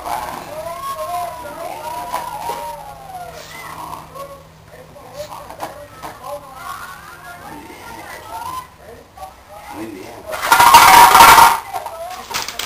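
A puppy growls and yaps while tugging on a cloth.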